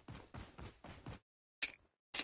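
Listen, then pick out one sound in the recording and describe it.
Footsteps thud quickly on grass.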